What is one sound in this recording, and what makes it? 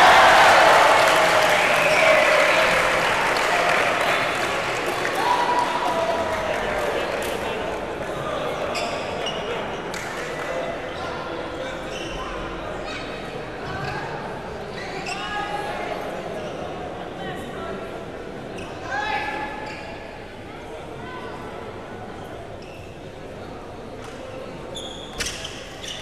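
A shuttlecock is struck with a racket.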